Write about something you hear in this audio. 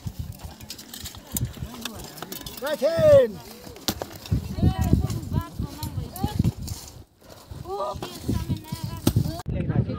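Shovels scrape and thud into stony ground.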